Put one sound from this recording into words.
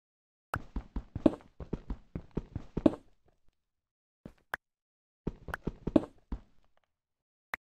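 A pickaxe chips rapidly at stone in quick, dull knocks.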